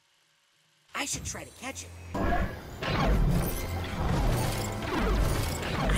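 A blaster zaps rapidly underwater.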